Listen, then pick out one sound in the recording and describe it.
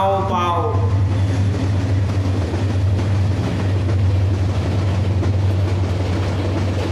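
A young man speaks forcefully into a microphone over loudspeakers.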